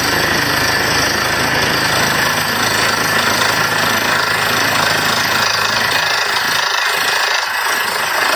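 A drill bit grinds into the ground.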